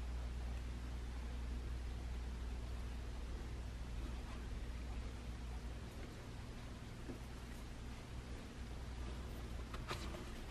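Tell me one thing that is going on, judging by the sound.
Metal tweezers rustle soft tissue paper.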